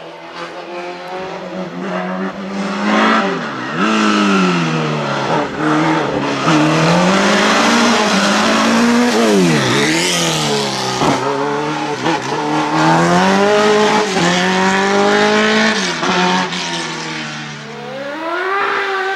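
A racing car engine screams loudly, revving up and dropping in pitch with each gear change.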